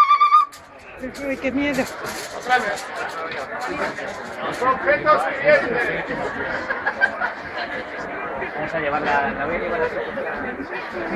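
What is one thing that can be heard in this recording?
A crowd of men and women talk and murmur nearby outdoors.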